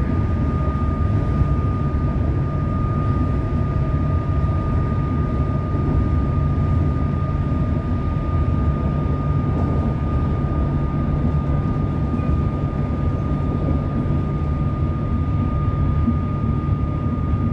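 A steady high whine hums from the train's motor.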